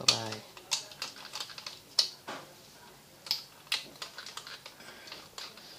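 A plug clicks and scrapes into a wall socket.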